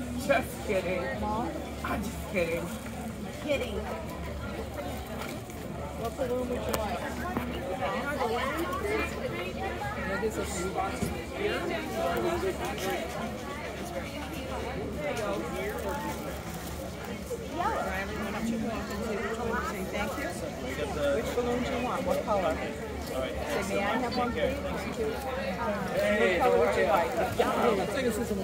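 A crowd of men and women chatter in the background outdoors.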